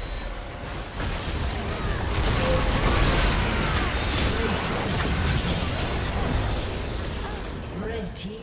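Spell blasts and impact effects crash and whoosh in a fast fight.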